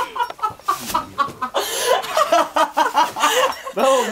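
A young man laughs and talks loudly, close by.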